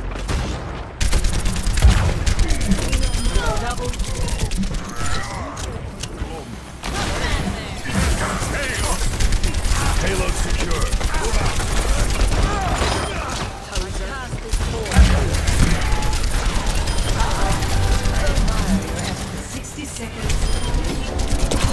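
A rapid-fire energy gun shoots in quick bursts.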